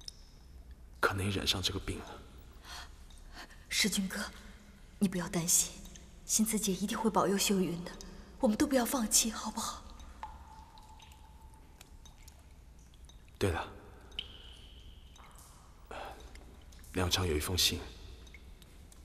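A young man speaks in a low, worried voice close by.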